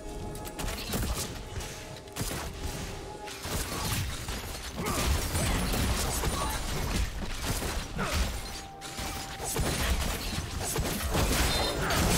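Video game battle effects crash and whoosh as spells and hits land.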